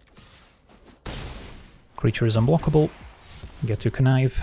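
A game plays a shimmering magical whoosh as a card takes effect.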